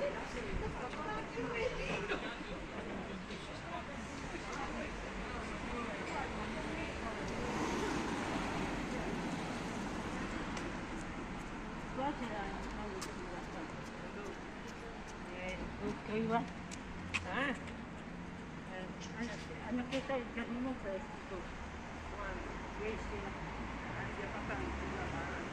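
Traffic hums steadily outdoors on a street.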